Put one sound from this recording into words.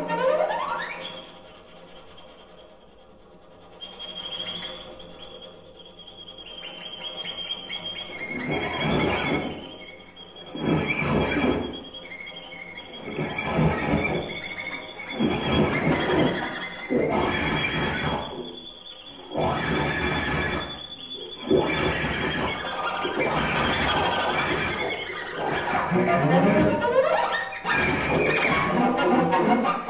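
An electric guitar plays quiet notes.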